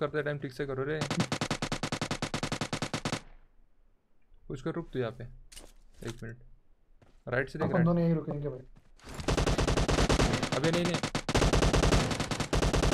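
Rapid gunfire rattles from a game.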